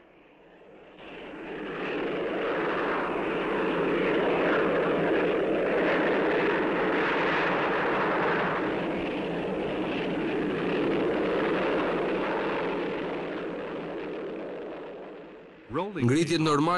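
A jet engine roars loudly as a jet flies past.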